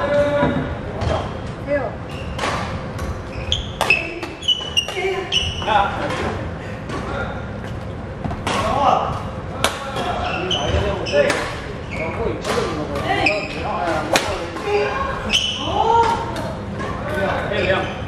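Sports shoes squeak on a wooden court floor.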